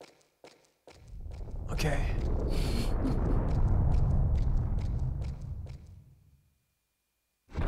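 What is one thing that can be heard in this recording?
A low, eerie rumble swells and fades.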